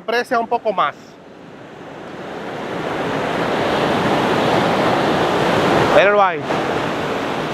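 Waves wash onto a sandy shore.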